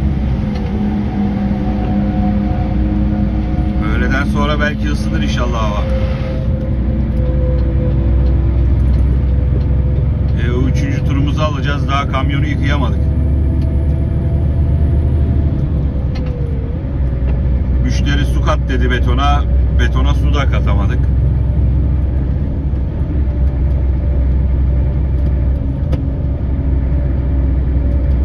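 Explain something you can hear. Tyres roar steadily on the motorway.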